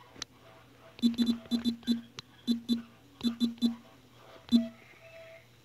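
Short clicks of a phone keyboard sound as someone types.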